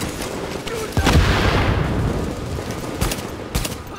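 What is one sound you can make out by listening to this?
An explosion booms loudly, with a rumbling roar.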